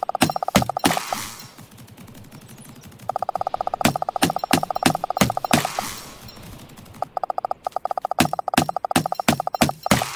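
An axe chops into a tree trunk with sharp, repeated thuds.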